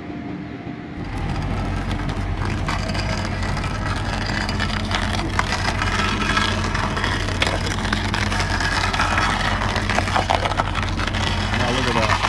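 A stump grinder grinds loudly into a wooden stump.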